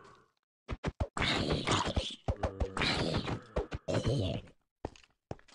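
A zombie groans in a game.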